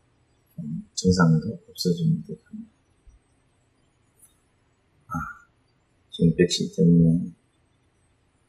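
A middle-aged man speaks calmly and close to a microphone, in short phrases with pauses.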